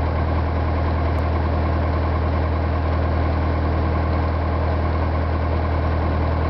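Tyres roll over the road with a steady rumble.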